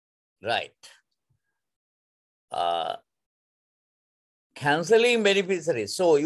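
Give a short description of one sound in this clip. A man speaks calmly through a microphone in an online call, with short pauses.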